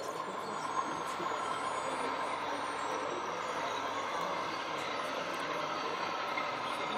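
A small model excavator's electric motors whir steadily.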